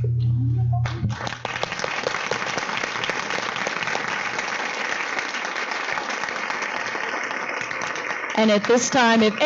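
A large crowd claps and cheers loudly.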